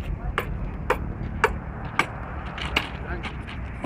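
Metal tools strike a steel rail with sharp clanks.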